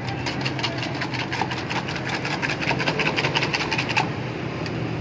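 A whisk rattles quickly against a metal bowl, beating eggs.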